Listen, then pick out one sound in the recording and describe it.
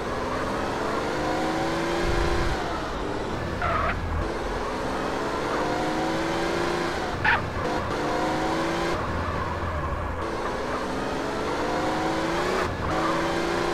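A car engine revs up again and again as it shifts through the gears.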